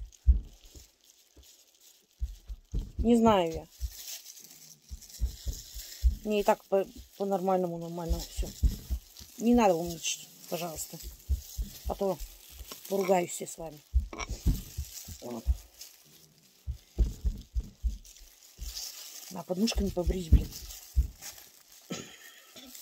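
A brush scrapes through wet hair.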